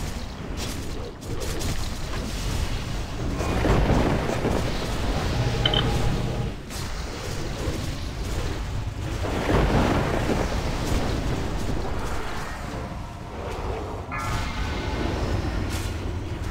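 Spell effects crackle and blast in a game battle.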